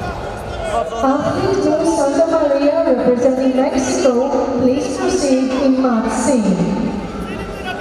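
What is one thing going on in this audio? Spectators shout and cheer in a large arena.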